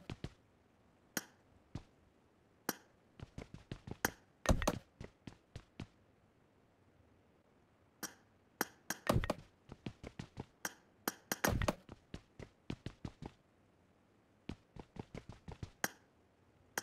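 Short clicks and taps sound in quick bursts as building pieces snap into place.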